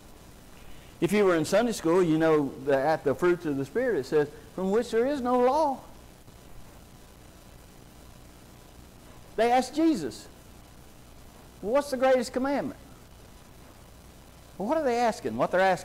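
A middle-aged man preaches through a microphone in short bursts, with pauses between.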